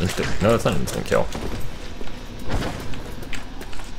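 A heavy body thuds onto a stone floor.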